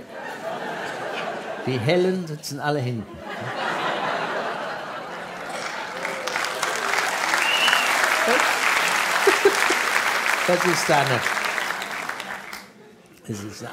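A large audience laughs and applauds in a hall.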